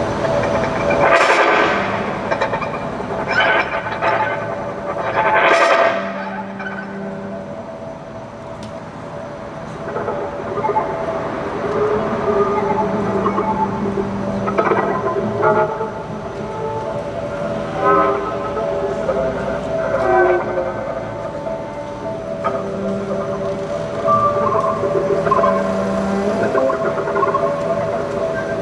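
A cello plays low bowed notes.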